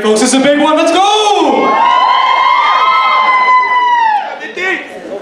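A man sings loudly into a microphone, heard through loudspeakers in a large hall.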